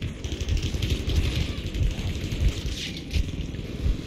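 Gunfire cracks.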